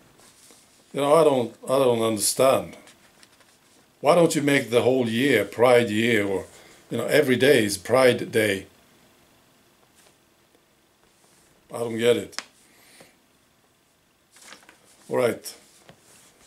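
A middle-aged man speaks calmly and close by, in bursts with pauses.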